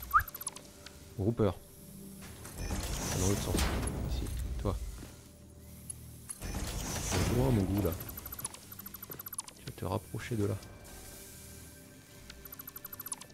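A building tool whooshes and hums in bursts.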